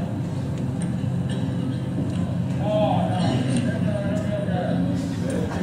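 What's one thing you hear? A man speaks calmly to an audience, heard from across a room.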